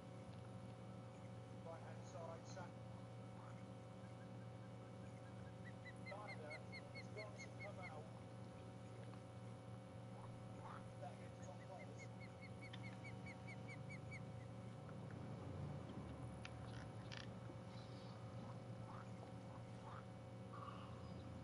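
A fishing reel whirs steadily as line is wound in.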